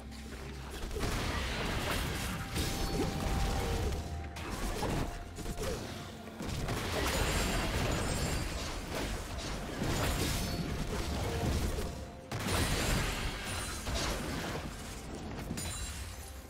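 Game spells crackle and burst during a fight.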